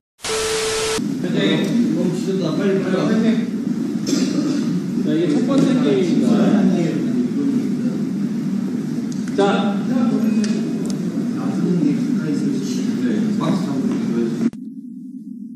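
Young men talk and laugh with animation nearby.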